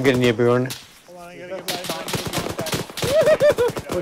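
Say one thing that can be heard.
Rifle shots crack in quick bursts nearby.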